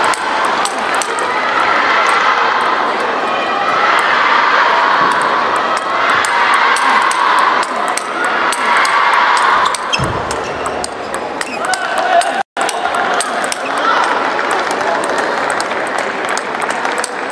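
A table tennis ball clicks rapidly back and forth off paddles and the table.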